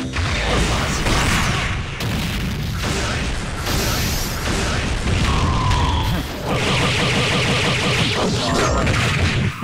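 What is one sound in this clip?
Punches and blasts hit hard in rapid bursts.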